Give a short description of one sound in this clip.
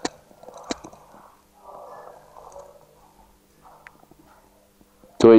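An elderly man speaks quietly across a room.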